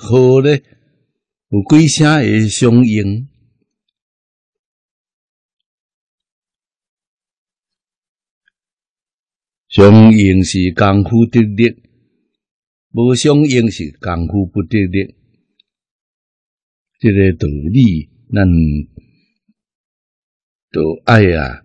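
An elderly man speaks calmly and slowly, close to a microphone, with long pauses.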